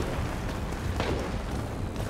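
Bullets smack into a wall close by.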